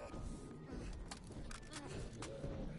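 Metallic clicks sound as a gun is reloaded.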